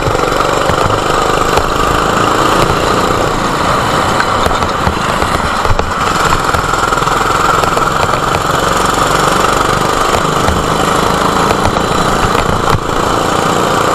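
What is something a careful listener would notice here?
Other go-kart engines whine nearby.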